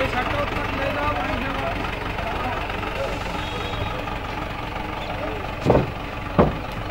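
Several men talk in the distance outdoors.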